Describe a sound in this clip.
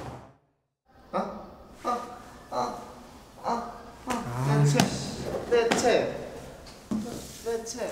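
A young man groans in pain.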